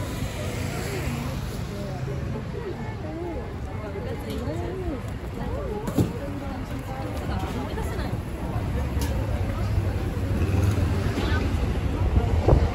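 A crowd of pedestrians murmurs and chatters nearby on a busy street.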